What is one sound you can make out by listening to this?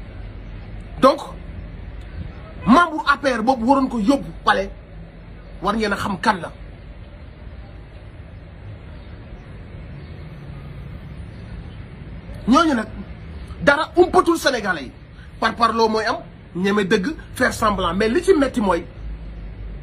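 A man speaks with animation close to the microphone, in short bursts with pauses.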